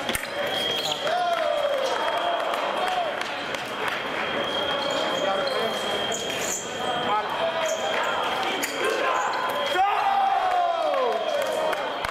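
Fencers' shoes squeak sharply on the floor.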